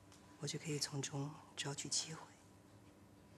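A woman speaks quietly and calmly, close by.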